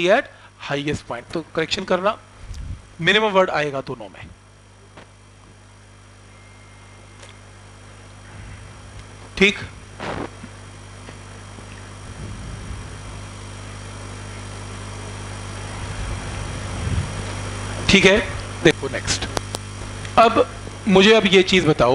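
A man lectures calmly through a close microphone, with pauses.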